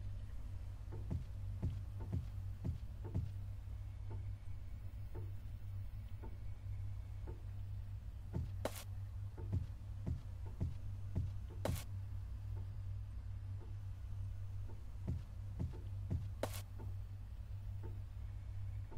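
Footsteps thud slowly on a wooden floor.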